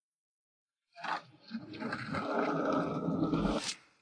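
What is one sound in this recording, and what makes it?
A wheeled suitcase rolls over pavement.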